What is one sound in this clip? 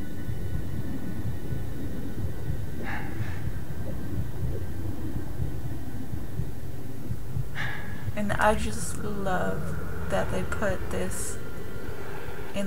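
A low wind rumbles steadily outdoors.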